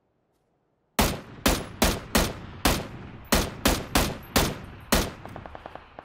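A rifle fires a rapid series of loud shots that echo away.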